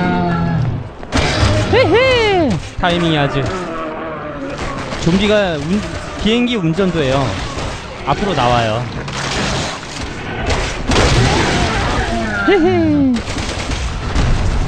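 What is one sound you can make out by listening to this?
A monster roars and groans loudly.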